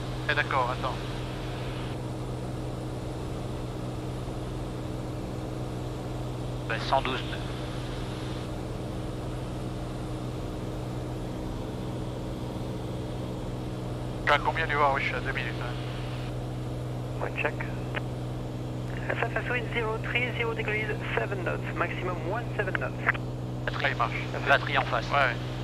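An aircraft engine drones steadily throughout.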